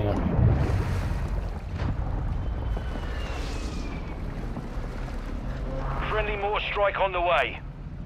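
Water splashes and sloshes as a swimmer strokes through it.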